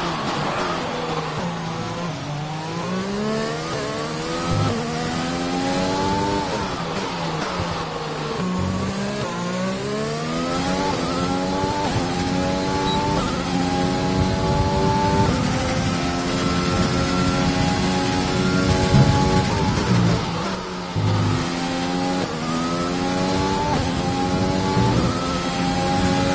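A racing car engine roars, climbing in pitch and dropping sharply at each gear change.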